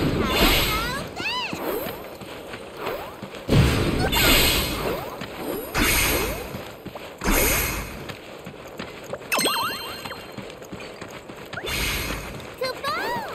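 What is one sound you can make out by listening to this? Bright chiming tones glide up and down.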